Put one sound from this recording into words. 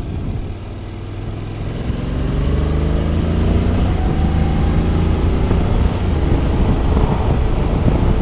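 A motorcycle engine revs up as the bike accelerates.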